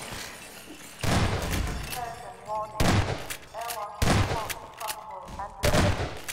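A shotgun fires with loud booming blasts.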